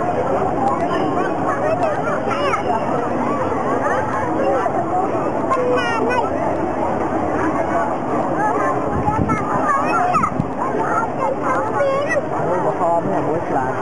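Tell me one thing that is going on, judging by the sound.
A large crowd cheers and shouts loudly outdoors.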